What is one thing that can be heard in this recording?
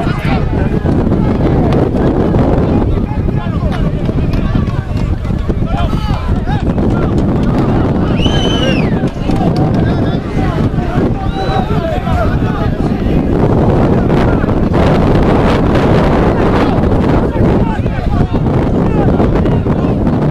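Young men shout to each other across a distant field.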